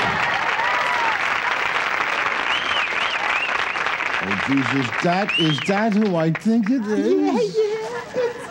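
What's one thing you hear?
A woman laughs loudly and heartily.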